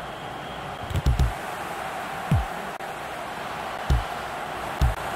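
A ball is kicked with dull thuds now and then.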